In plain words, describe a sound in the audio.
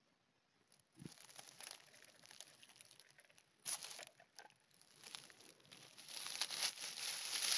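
Dry leaves rustle and crunch close by.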